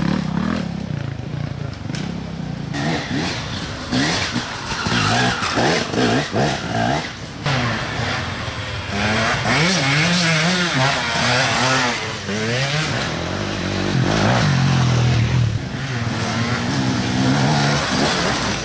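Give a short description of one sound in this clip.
Dirt bike engines rev and roar, rising and falling in pitch as the bikes pass close by.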